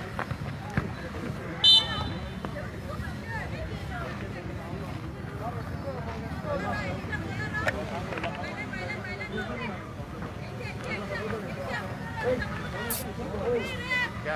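Players and spectators shout and call out outdoors.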